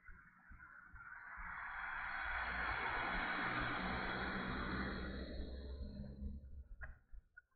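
A van passes close by with a rushing whoosh.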